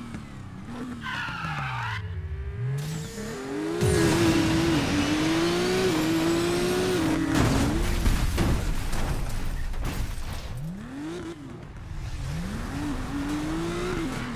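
Tyres squeal as a car drifts around a bend.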